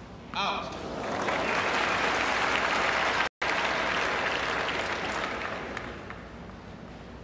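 A crowd cheers and applauds in a large arena, then slowly fades.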